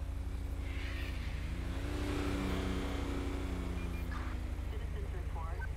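A pickup truck drives past close by and fades away.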